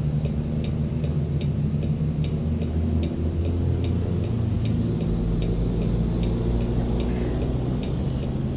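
A truck engine hums with a deep, steady drone.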